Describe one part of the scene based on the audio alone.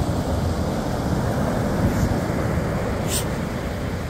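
A dog digs and scrapes at sand.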